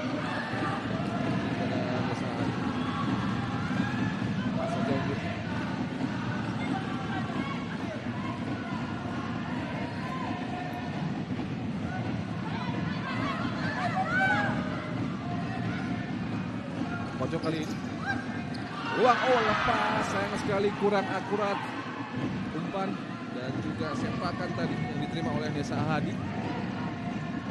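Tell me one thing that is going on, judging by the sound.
A large crowd murmurs and cheers in an echoing indoor hall.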